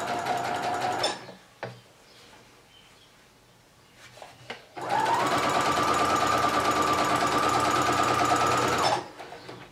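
A sewing machine runs in fast, steady bursts of whirring stitching.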